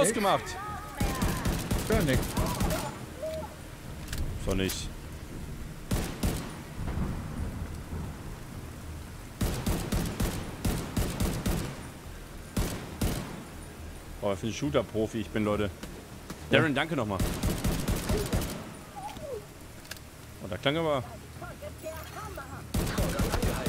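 Gunfire rattles in bursts.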